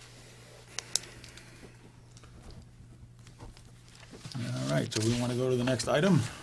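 Papers rustle as pages are turned.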